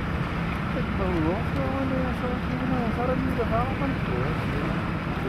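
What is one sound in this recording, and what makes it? Men talk faintly in the distance.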